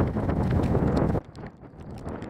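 Strong wind roars against the microphone outdoors on open water.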